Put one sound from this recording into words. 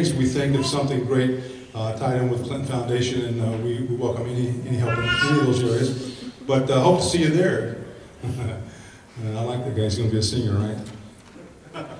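An older man speaks with animation into a microphone in a hall.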